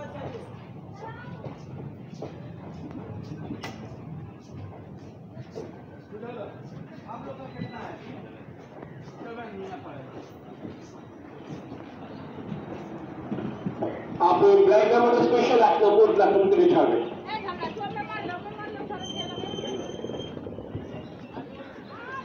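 A train rolls past close by, its wheels rumbling and clattering on the rails.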